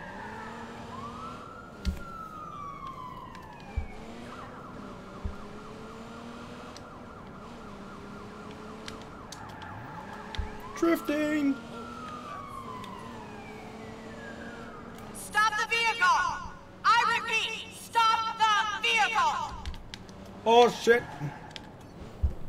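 A police siren wails and sweeps up and down.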